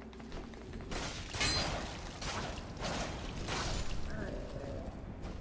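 Metal swords clash and clang in a fight.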